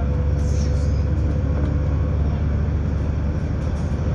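A lorry passes by in the other direction.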